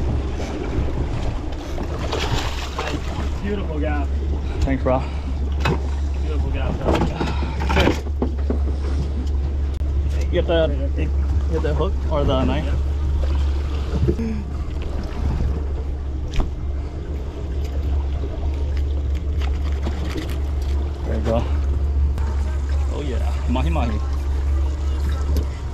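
An outboard motor idles with a low, steady hum.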